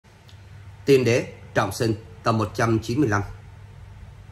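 A middle-aged man speaks close to the microphone with animation.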